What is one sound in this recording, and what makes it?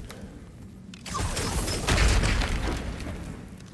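A magical beam crackles and hisses loudly.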